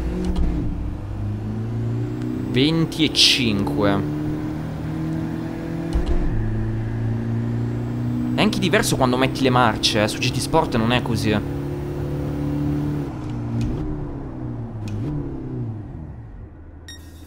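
A racing car engine drones and revs steadily, then stops.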